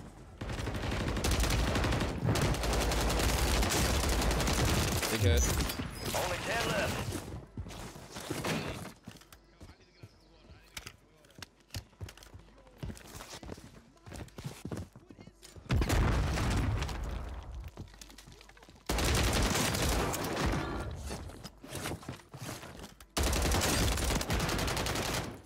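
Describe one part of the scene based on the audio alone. Rapid gunfire crackles in loud bursts.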